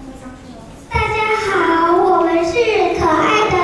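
Young children sing together, loud through a loudspeaker in an echoing hall.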